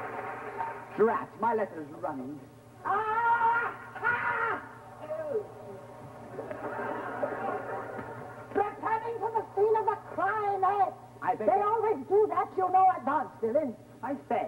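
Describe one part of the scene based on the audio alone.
A young man speaks clearly.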